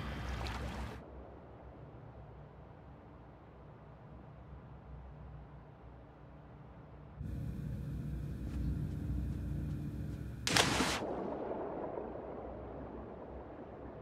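Water bubbles and churns in a muffled way after the plunge.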